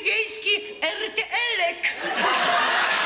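A woman sings with animation into a microphone.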